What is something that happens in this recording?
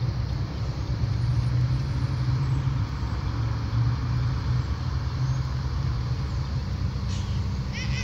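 A car drives past on a nearby road.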